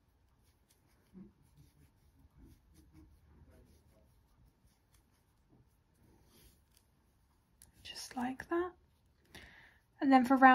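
A metal crochet hook softly scrapes and clicks through yarn.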